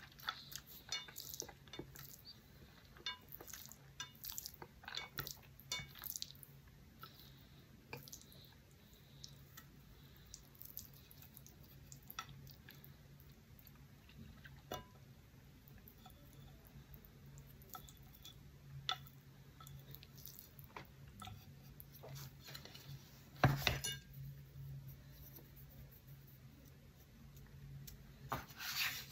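Chopsticks click and tap against a plate.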